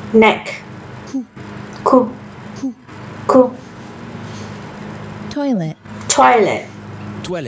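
A young woman says single words out slowly and clearly, close to a microphone.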